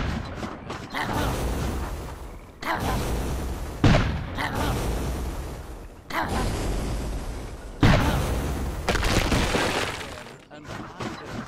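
Loud explosions boom and rumble in quick bursts.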